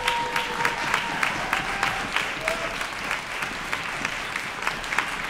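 Applause rings out in a large hall.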